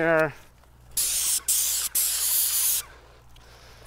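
A pressure sprayer hisses loudly in short bursts.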